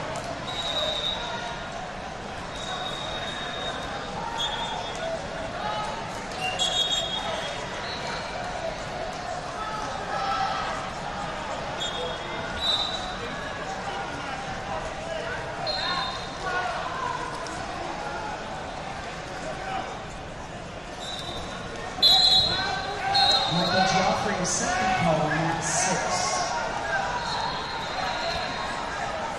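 A large crowd chatters steadily in a big echoing hall.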